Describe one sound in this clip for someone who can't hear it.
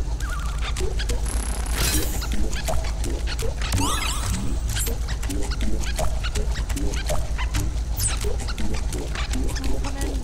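Playful electronic game music plays steadily.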